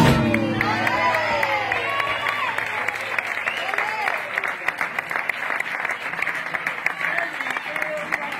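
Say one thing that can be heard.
A woman sings loudly with passion.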